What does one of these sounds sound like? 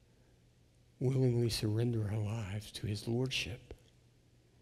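An older man speaks calmly through a microphone in a reverberant hall.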